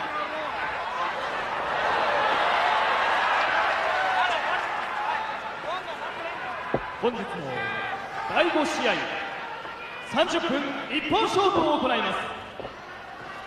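A large crowd cheers and roars in an echoing hall.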